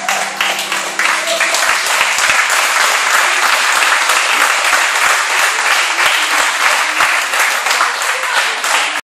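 Many people clap their hands in a large echoing hall.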